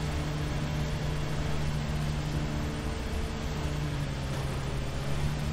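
A lawn mower engine drones steadily up close.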